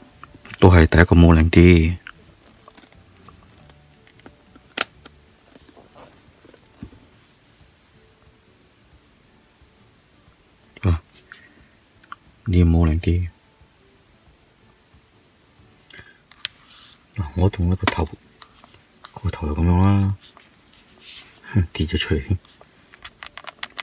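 Plastic parts click and rattle softly.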